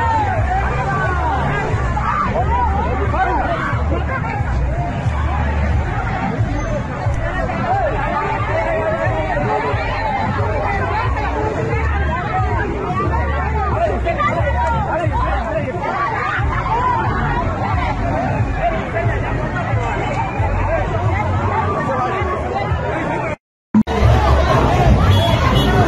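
A crowd of young men and women shouts and yells close by.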